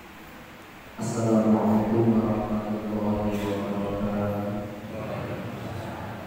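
A second man chants loudly into a microphone.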